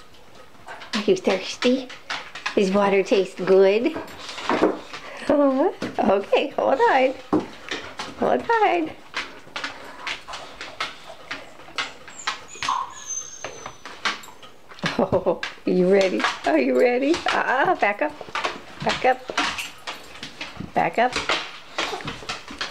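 A dog barks and howls close by.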